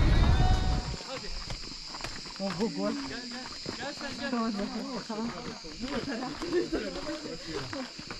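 Footsteps crunch on a rocky trail.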